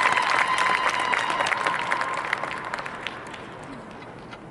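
A marching band plays loudly in a large echoing arena and fades away.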